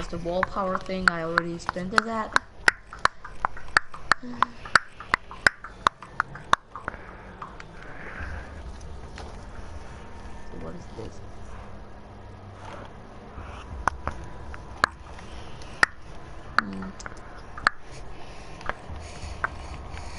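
Menu clicks tick in quick succession.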